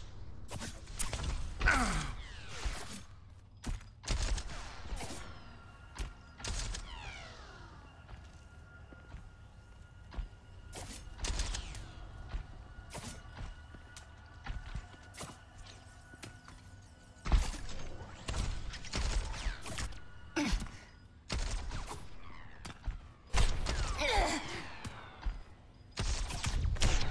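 Thrown blades whoosh and strike in quick bursts.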